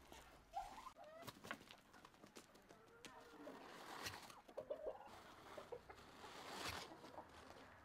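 Chickens cluck.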